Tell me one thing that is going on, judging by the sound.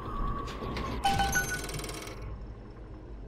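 A bright electronic jingle rings out.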